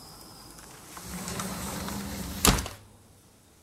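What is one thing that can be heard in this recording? A window slides shut and closes with a knock.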